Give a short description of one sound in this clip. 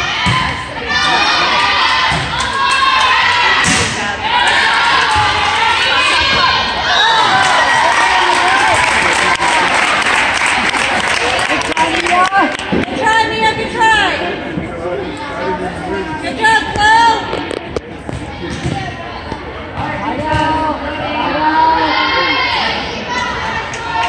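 A crowd of young girls and spectators shouts and cheers in a large echoing gym.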